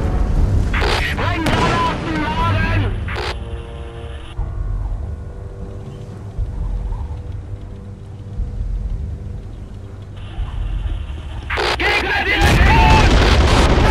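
A tank engine rumbles low.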